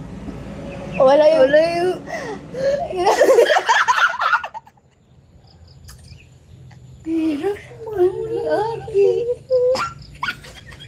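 A second young woman answers, chatting close by.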